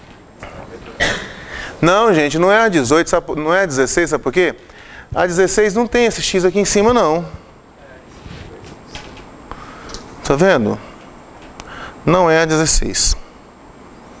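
A man lectures with animation through a clip-on microphone, with pauses between phrases.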